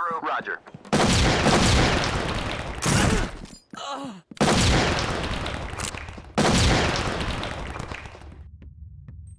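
A smoke grenade hisses loudly in bursts.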